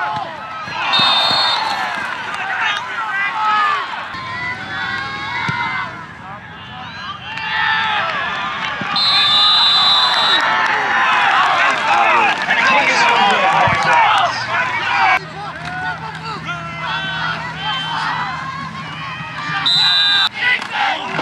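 A referee's whistle blows sharply several times.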